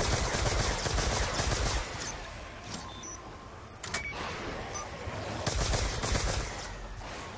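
A futuristic gun fires rapid zapping energy blasts.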